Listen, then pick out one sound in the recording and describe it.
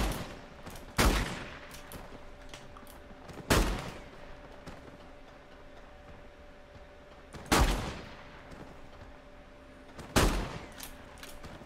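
Loud gunshots ring out every few seconds, each one ringing out and fading.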